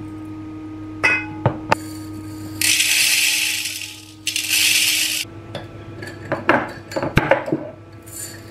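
A glass jar lid clinks.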